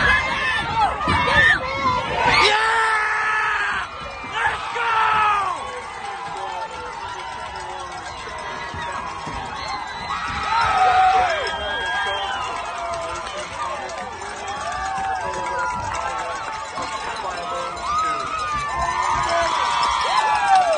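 A crowd of spectators cheers and screams loudly close by.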